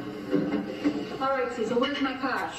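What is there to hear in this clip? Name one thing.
A young man speaks, heard through a television speaker.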